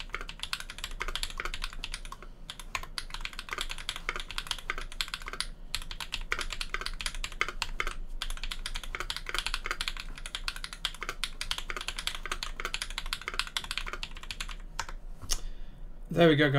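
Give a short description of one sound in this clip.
Keys clatter rapidly on a mechanical keyboard.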